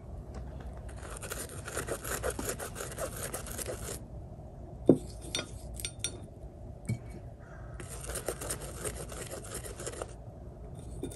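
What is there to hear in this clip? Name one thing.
A paintbrush scrubs softly on a paint pan.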